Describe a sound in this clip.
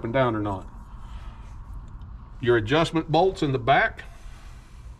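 An older man speaks calmly close by.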